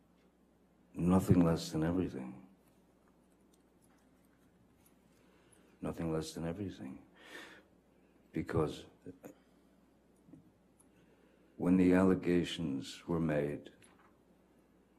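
A man speaks slowly and calmly into a microphone, in short bursts with pauses.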